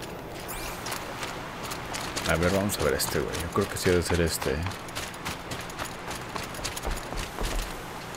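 Footsteps run over dirt and wooden planks.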